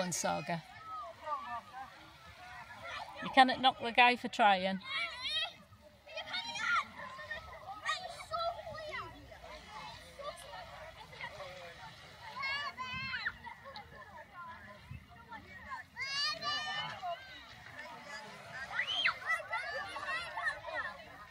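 Small waves lap gently on the shore.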